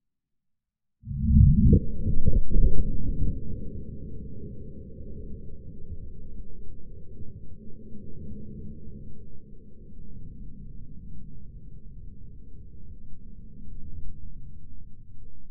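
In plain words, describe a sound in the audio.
A loud explosion booms outdoors, then rumbles and echoes away slowly.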